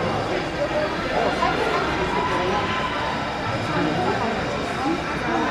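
Young hockey players shout and chatter in a large echoing arena.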